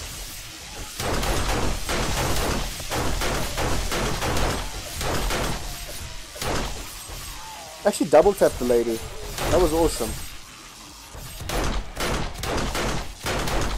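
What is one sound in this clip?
A pistol fires rapid shots at close range.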